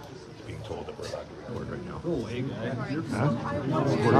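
Other people talk in the background of a room.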